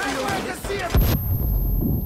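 A stun grenade bangs loudly.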